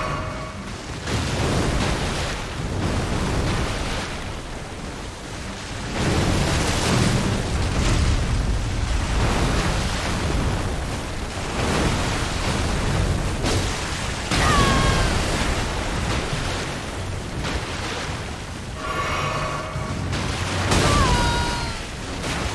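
A large beast roars and growls.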